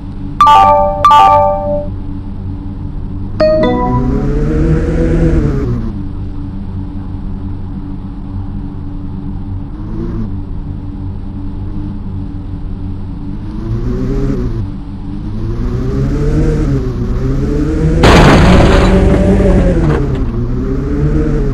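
A sports car engine hums and revs up and down as the car speeds along.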